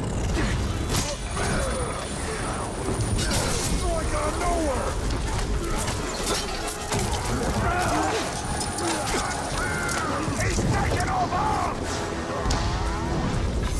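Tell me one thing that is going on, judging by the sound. Swords clash and blades strike in a fight.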